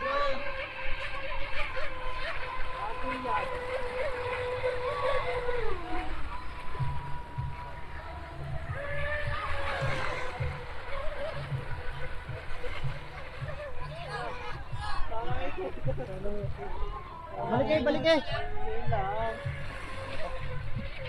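Speedboat engines whine across open water, rising and falling in pitch.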